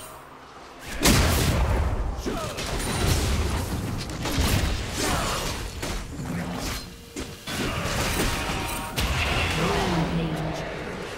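Magic blasts and weapon hits crash during a video game fight.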